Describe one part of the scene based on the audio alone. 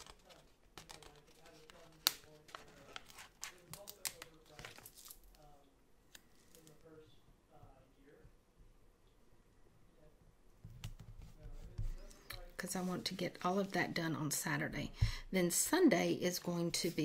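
A sheet of stickers rustles and crinkles close by.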